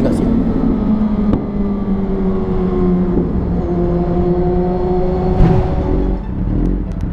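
A motorcycle engine roars and slowly winds down in pitch.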